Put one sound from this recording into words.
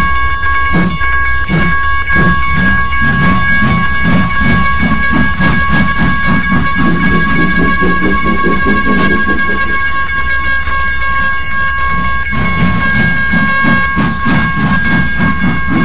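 A steam whistle blows a long steady chord.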